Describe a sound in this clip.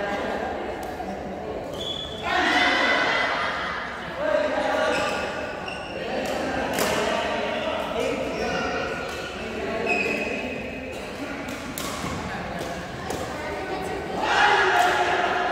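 Shoes squeak on the hard floor.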